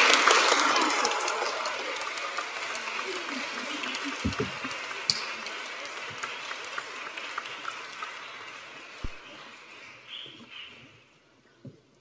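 A crowd applauds in a large echoing hall, and the applause slowly dies away.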